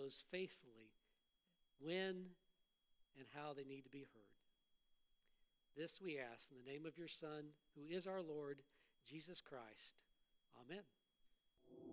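A middle-aged man speaks calmly and slowly into a microphone.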